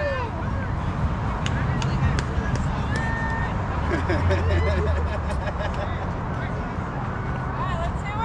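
Several men and women chatter and call out at a distance outdoors.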